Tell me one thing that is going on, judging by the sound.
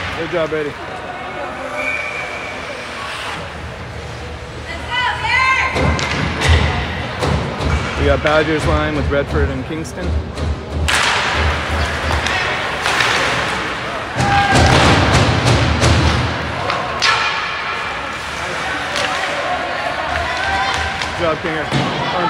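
Skates scrape and hockey sticks clack on the ice in a large echoing rink.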